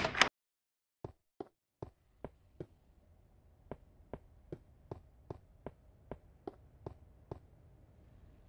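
Footsteps tap on a hard stone floor.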